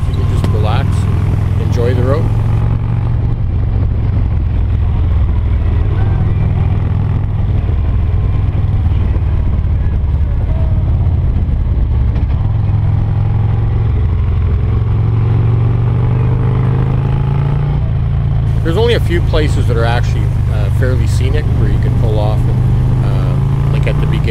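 A touring motorcycle engine drones while cruising.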